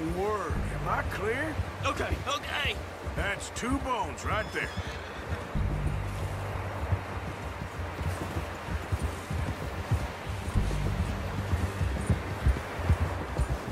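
A horse trots through snow with muffled hoofbeats.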